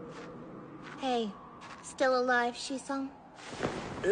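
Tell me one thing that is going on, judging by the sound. A young girl speaks softly, close by.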